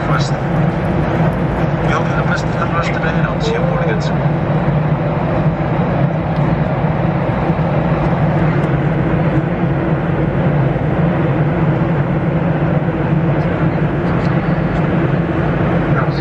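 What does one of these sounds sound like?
A steady, low engine drone hums throughout.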